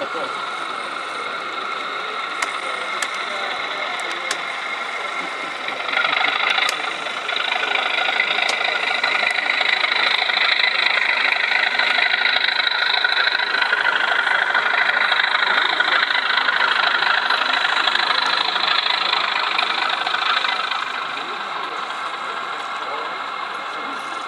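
A model diesel locomotive's engine rumbles and hums as it rolls slowly along the track.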